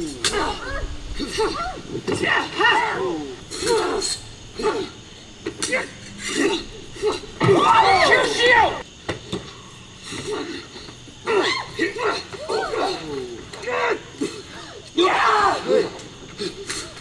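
Metal swords clash and ring.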